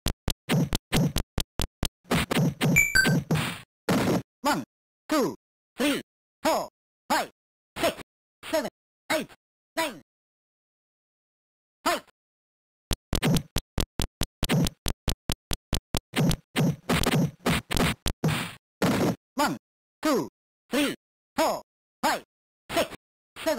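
Electronic game punches thump and blip in quick bursts.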